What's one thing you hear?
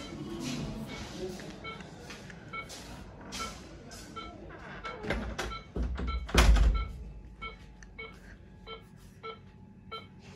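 A patient monitor beeps at a steady pace.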